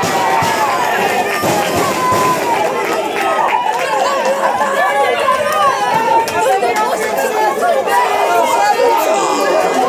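A crowd of young men chants and cheers loudly nearby.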